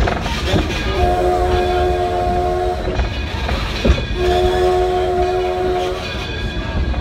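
A steam whistle blows two long blasts.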